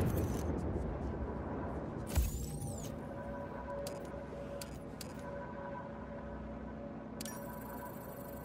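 A parachute flaps in the wind.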